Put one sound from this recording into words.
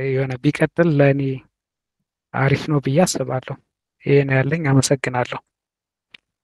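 A young man talks calmly over an online call.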